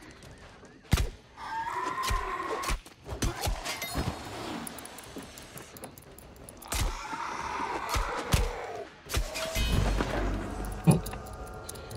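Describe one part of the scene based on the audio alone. Weapon blows land with sharp thuds during a fight.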